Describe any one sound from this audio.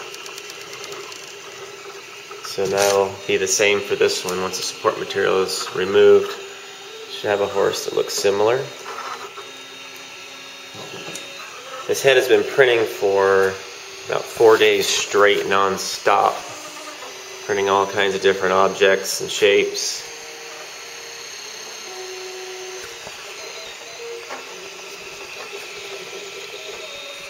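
A printer's motors whir and hum softly.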